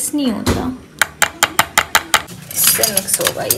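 Metal utensils clatter together.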